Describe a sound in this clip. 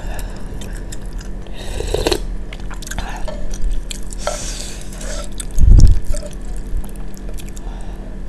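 A young woman chews food with wet, soft smacking sounds close to a microphone.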